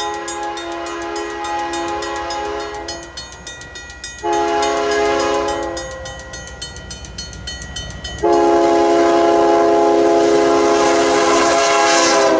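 A crossing bell dings rapidly.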